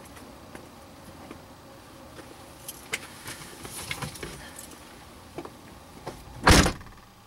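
Things rustle and knock close by inside a car.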